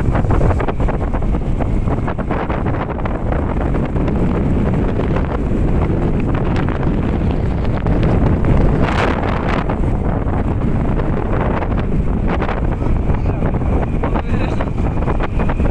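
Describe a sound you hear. Heavy rain patters and drums steadily.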